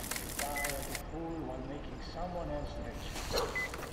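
A hand-cranked charger whirs and clicks.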